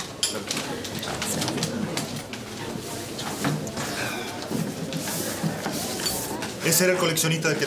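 A crowd chatters in the background of a room.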